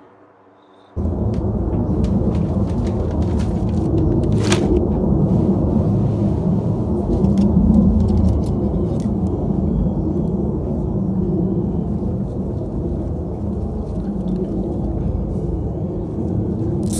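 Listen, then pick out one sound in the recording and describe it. An engine idles with a steady, rough rumble and ticking.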